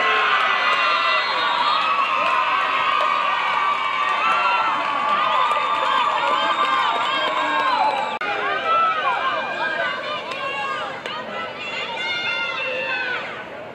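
Young women cheer and shout excitedly outdoors.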